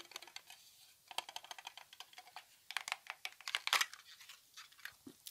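A plastic container crinkles and taps under fingernails.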